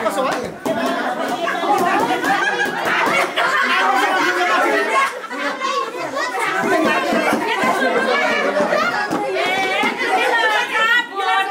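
A crowd of men and women chatter and laugh loudly close by.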